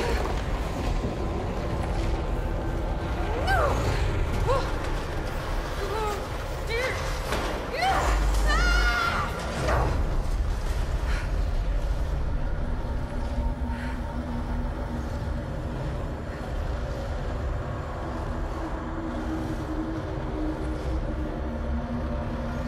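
Debris rumbles and clatters as it flies through the air.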